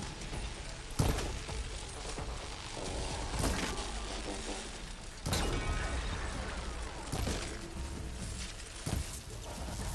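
Heavy impacts boom and crash loudly.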